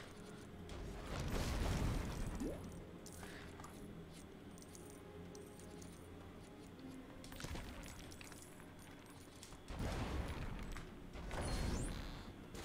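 Lego bricks burst apart with a rattling clatter.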